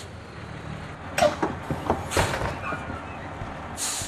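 Bus doors hiss and clatter open.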